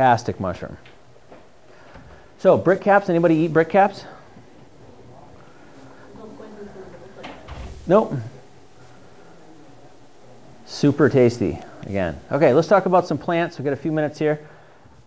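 A man speaks calmly, explaining at a steady pace.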